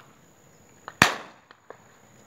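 A shotgun fires nearby with a sharp bang.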